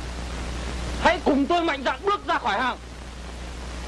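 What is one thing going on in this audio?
A young man speaks loudly and briefly.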